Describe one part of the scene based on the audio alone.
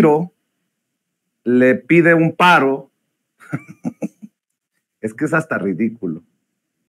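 A middle-aged man speaks with animation into a close microphone, in short bursts with pauses.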